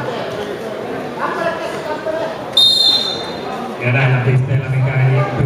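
Several men talk in the background of a large echoing hall.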